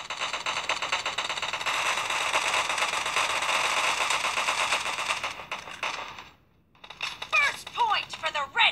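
Rapid gunfire crackles from a phone's small speaker.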